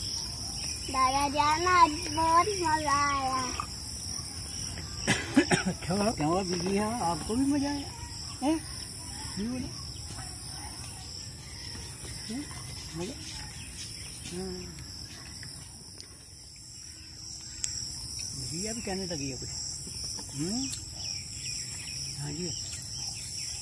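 A young boy talks with animation close by.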